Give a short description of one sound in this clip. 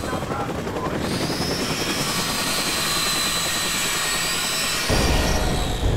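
A cutting torch hisses and crackles sharply.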